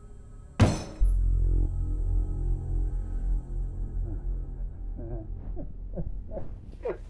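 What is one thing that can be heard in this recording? An elderly man sobs.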